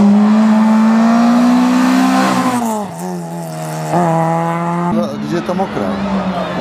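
A rally car engine roars loudly as it speeds past close by.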